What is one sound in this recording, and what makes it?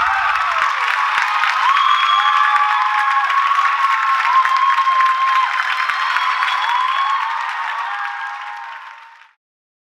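An audience whistles shrilly.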